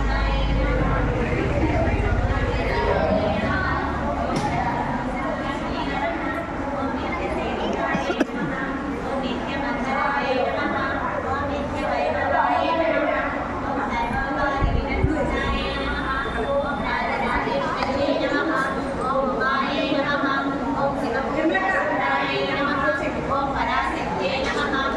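A group of women chant together in a large echoing hall.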